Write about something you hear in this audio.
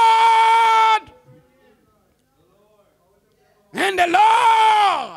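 An elderly man shouts and preaches with fervour into a microphone, holding long strained notes.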